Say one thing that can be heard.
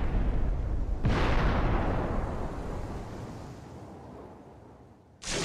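A stone bridge crumbles with a deep roar that slowly fades away.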